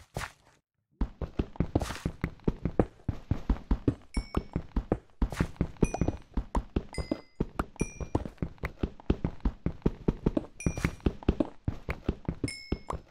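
A pickaxe chips rapidly at stone with quick, repeated knocks.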